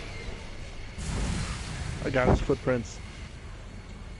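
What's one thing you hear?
A laser gun fires with a loud buzzing blast.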